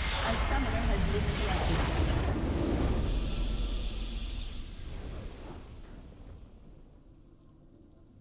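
A triumphant fanfare swells and slowly fades.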